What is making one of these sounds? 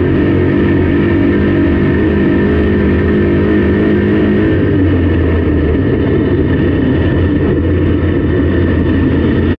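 Tyres rumble over a dirt track.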